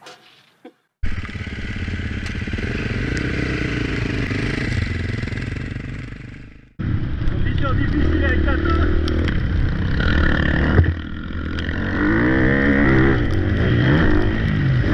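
A dirt bike engine revs and roars up close.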